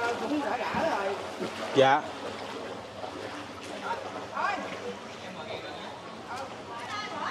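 Feet wade and splash through shallow floodwater.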